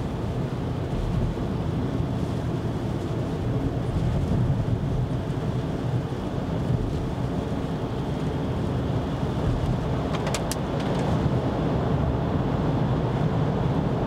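Road noise rumbles low inside a moving car.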